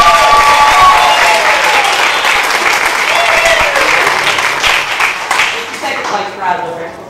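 A small group applauds indoors.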